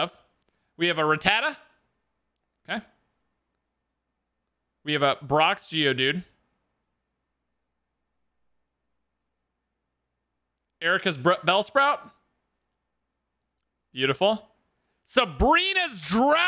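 A young man speaks with animation in short bursts, close to a microphone.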